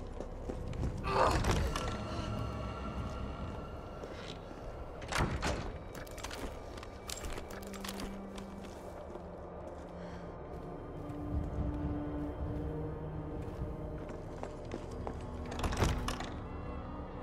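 A heavy door swings open.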